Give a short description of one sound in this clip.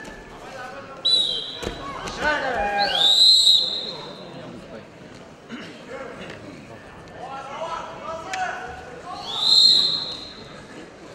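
A referee blows a sharp whistle several times.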